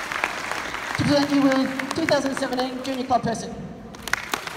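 A middle-aged woman speaks through a microphone in a large echoing hall.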